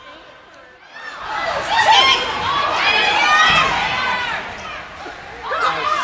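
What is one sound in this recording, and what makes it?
A crowd cheers and shouts loudly in a large echoing arena.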